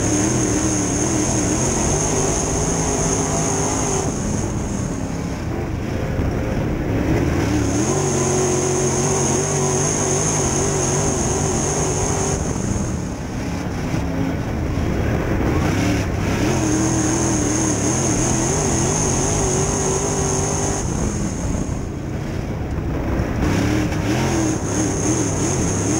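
A race car engine roars loudly up close, rising on the straights and easing off into the turns.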